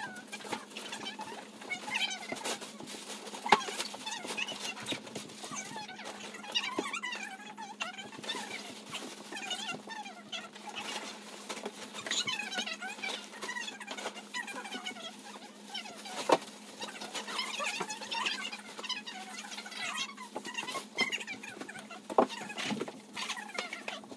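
Several young women talk and laugh close by.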